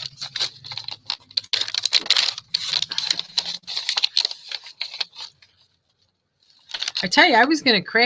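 Paper rustles and crinkles as hands fold it.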